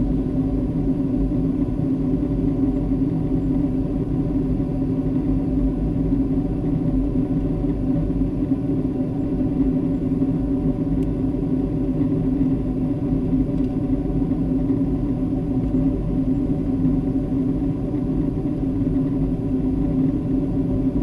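A jet airliner's engines roar steadily, heard from inside the cabin.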